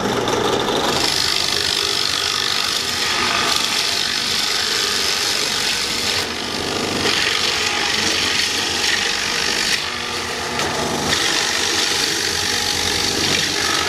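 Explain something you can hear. A drill bit bores into wood with a grinding hiss.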